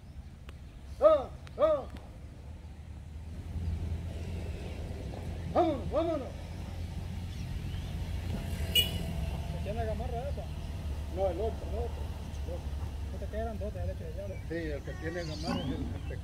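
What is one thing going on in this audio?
Cattle low and bawl in the distance.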